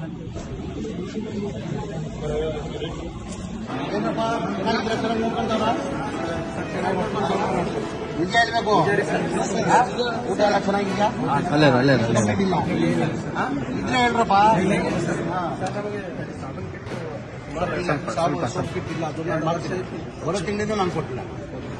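A middle-aged man speaks calmly with the young men.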